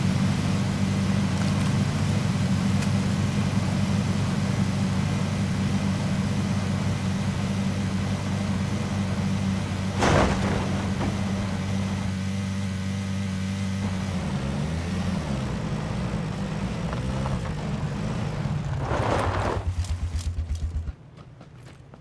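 A buggy engine drones loudly at speed, then slows and idles.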